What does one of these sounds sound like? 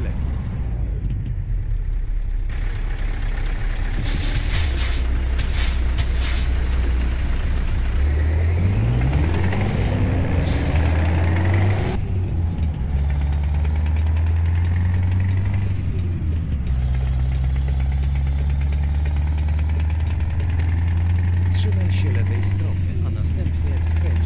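A heavy truck engine drones steadily, rising in pitch as it speeds up.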